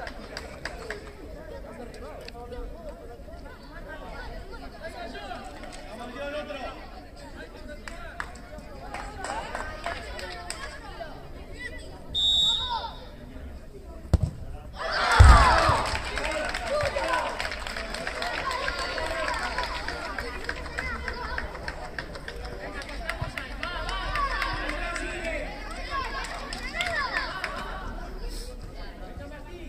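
Young players and spectators call out and chatter at a distance outdoors.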